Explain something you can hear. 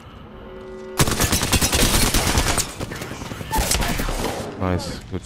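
Automatic gunfire rattles rapidly at close range.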